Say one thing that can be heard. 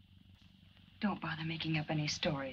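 A young woman speaks tensely, close by.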